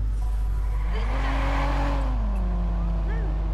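Tyres screech on the road as the car spins off.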